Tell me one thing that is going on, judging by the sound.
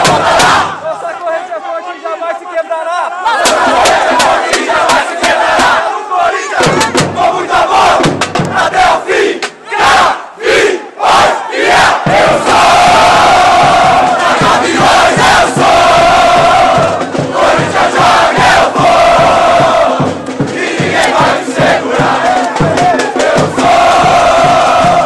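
A large crowd chants and sings loudly outdoors, close by.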